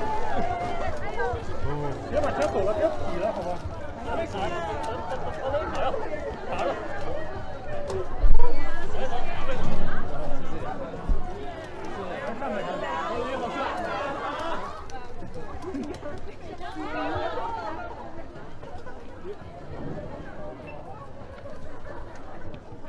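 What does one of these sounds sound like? A crowd of young women chatter and call out excitedly close by.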